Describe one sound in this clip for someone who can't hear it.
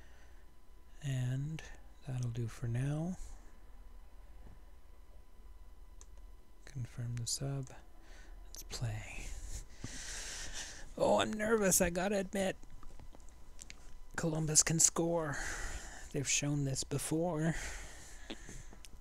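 An older man talks calmly and close to a microphone, with pauses.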